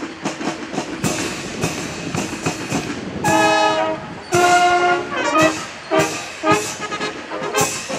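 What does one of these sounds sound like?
Drums beat in time with a marching band.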